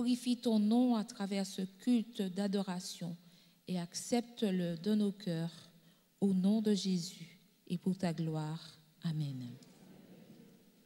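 An elderly woman prays aloud fervently into a microphone, heard through loudspeakers in an echoing hall.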